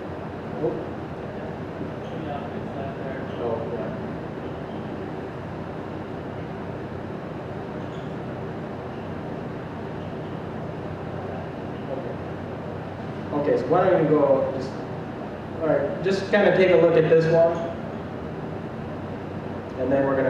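A man speaks calmly into a microphone in a large echoing hall, with pauses.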